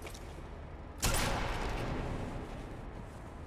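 A single gunshot cracks and echoes away.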